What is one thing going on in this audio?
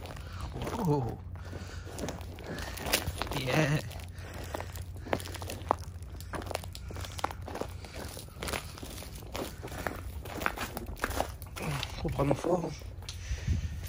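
Footsteps crunch on icy pavement.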